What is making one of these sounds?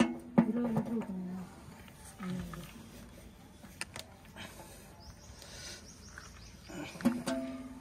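A wrench clicks and scrapes against a metal bolt.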